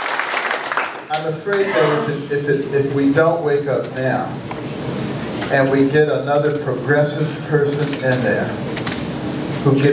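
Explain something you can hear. A man speaks calmly into a microphone through loudspeakers in a large room.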